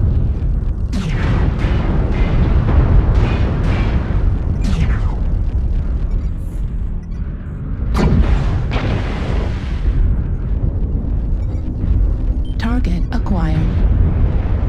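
Laser weapons fire with sharp zapping bursts.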